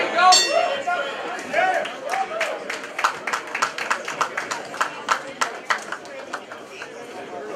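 Spectators clap their hands rapidly.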